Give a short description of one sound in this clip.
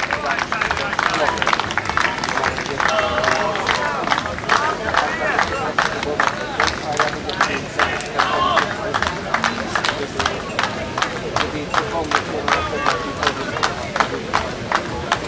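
A crowd of spectators chatters and shouts.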